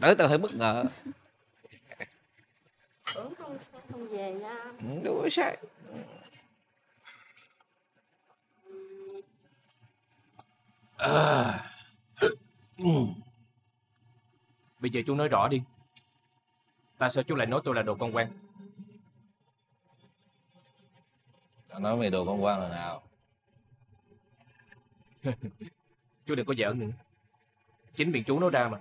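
A young man speaks quietly and with emotion, close by.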